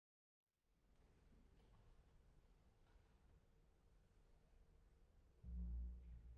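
An orchestra plays softly in a large hall.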